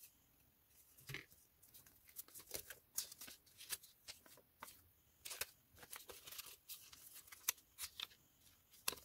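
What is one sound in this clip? Paper cards rustle and crinkle in hands.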